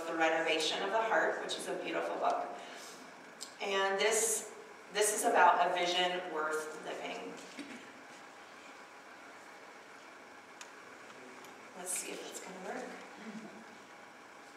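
A woman speaks through a microphone in a large hall, in short bursts.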